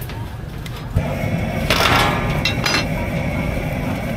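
Water hisses and sizzles loudly on a hot griddle.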